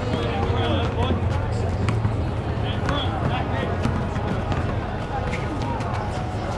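A crowd of people chatter outdoors nearby.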